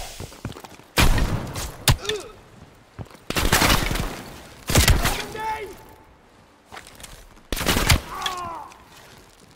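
Loud gunshots boom and echo in a cave.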